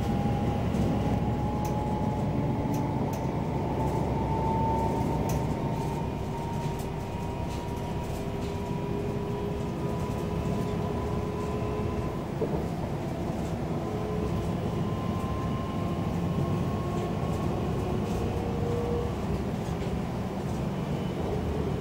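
A train's motor hums with a slowly rising whine.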